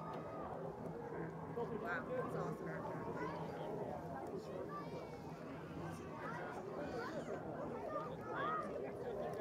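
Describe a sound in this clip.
Distant men and women chatter casually outdoors.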